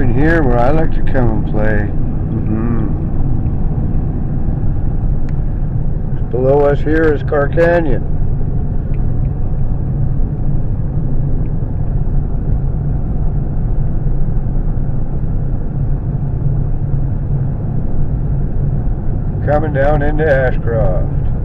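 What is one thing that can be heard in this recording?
A car drives along a road with a steady low rumble, heard from inside.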